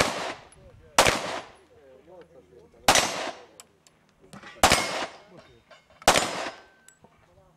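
Pistol shots ring out loudly outdoors, one every second or two, each echoing briefly.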